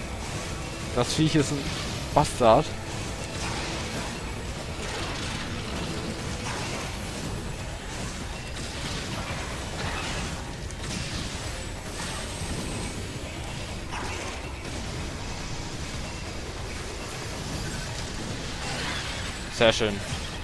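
A monster screeches loudly.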